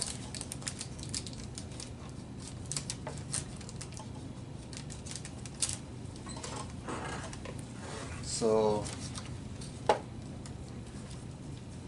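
Stiff plastic rustles and taps as it is handled.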